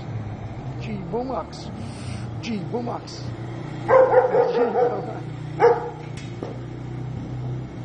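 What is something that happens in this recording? A quad bike engine hums as the bike drives past.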